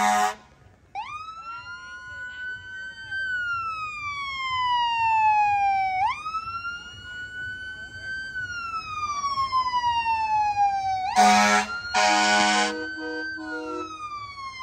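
A siren wails, rising and falling.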